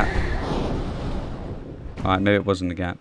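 A heavy rumbling crash slowly fades away.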